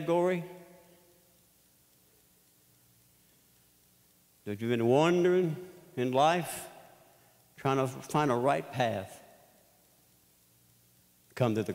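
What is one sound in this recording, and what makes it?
An older man speaks emphatically through a microphone in a large echoing hall, with pauses between phrases.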